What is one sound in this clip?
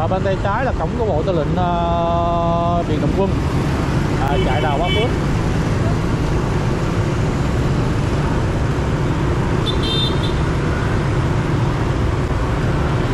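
Motorbike engines hum and rumble steadily nearby.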